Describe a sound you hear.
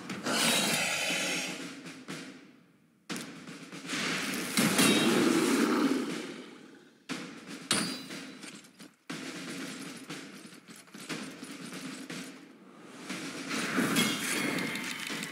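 Fantasy battle sounds of swords striking and magic spells bursting come in loud bursts.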